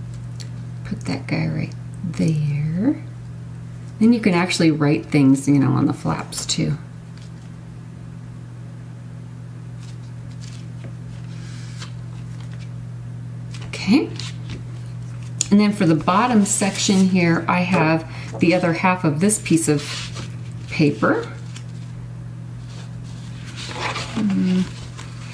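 A woman talks calmly and close to a microphone.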